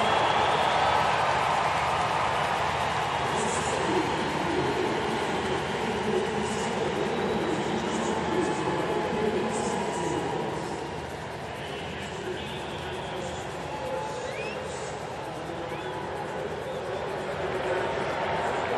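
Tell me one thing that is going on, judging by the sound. A large stadium crowd cheers and roars steadily, easing off a little midway.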